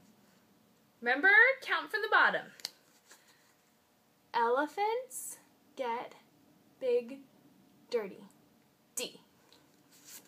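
A woman speaks clearly and with animation close by, in short phrases with pauses.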